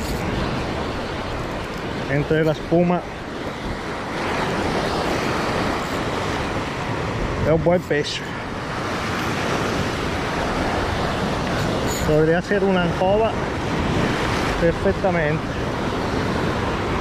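Sea waves break and wash against rocks.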